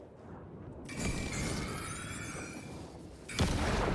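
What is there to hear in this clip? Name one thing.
A sharp hissing whoosh bursts out and fades.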